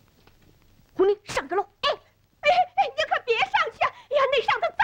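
A young child speaks in a high, excited voice close by.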